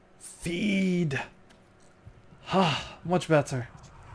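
A vampire feeds on a sleeping man with wet gulping sounds.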